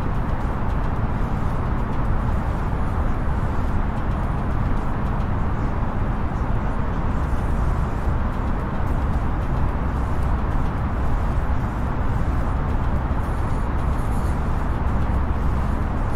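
A steady low rumble of jet engines and rushing air fills an aircraft cockpit.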